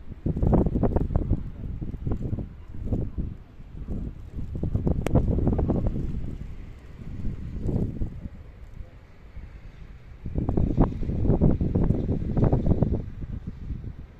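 Wind gusts roar against the microphone outdoors.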